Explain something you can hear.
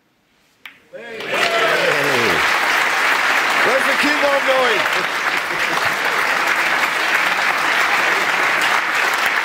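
A large audience laughs and applauds in a big hall.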